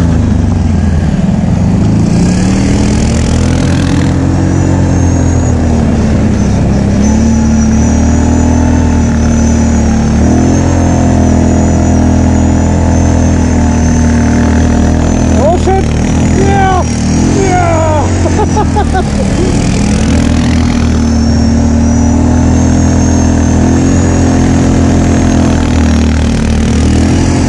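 A second quad bike engine buzzes ahead, rising and falling as it speeds through snow.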